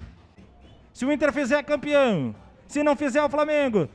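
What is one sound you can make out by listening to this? A man sings a loud chant through a microphone.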